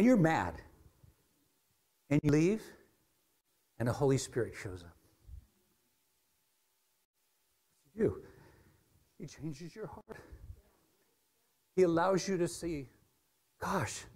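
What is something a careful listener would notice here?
A middle-aged man speaks with animation through a microphone in a large room, in short bursts with pauses.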